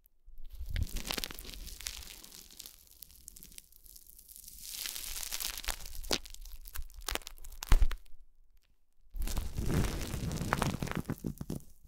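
Plastic wrap crinkles and rustles close up as a finger presses it.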